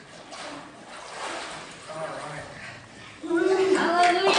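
Water splashes as a woman is dipped and lifted out.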